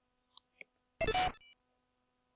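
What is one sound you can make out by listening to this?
A short electronic blip sounds as a game menu opens.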